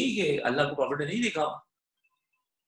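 A young man speaks calmly into a microphone over an online call.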